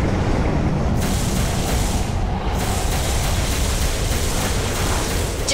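An electric blast crackles and sizzles.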